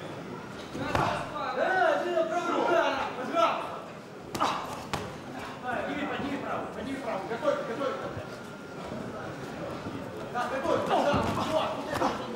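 A crowd of spectators shouts and cheers in an echoing hall.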